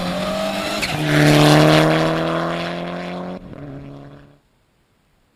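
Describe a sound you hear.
A rally car roars loudly past close by and fades away.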